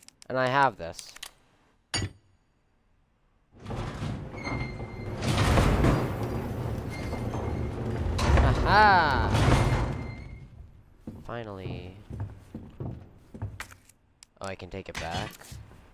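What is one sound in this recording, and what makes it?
Heavy metal gears clank and grind into place.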